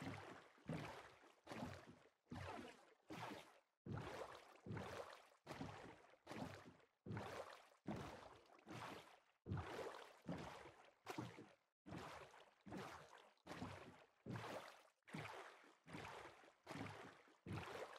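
Boat paddles splash through water in a steady, quick rhythm.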